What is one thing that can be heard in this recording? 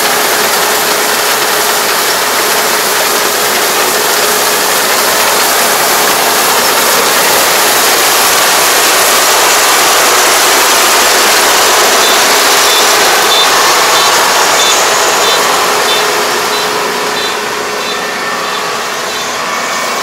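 A combine harvester engine roars close by, then moves off and fades slightly.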